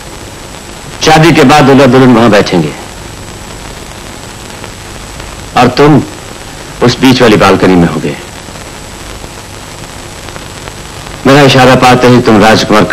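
A second man answers in a rough voice.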